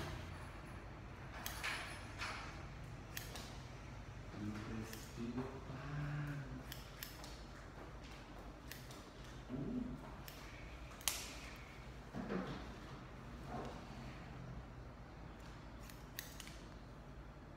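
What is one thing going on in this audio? Scissors snip quickly through hair close by.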